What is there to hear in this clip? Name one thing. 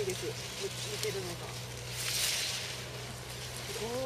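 Leaves rustle as a radish is pulled from the soil.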